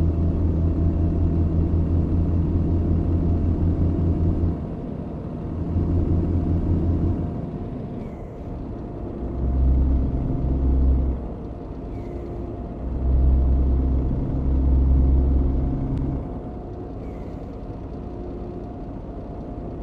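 A truck engine hums steadily, rising and falling as it drives along a highway.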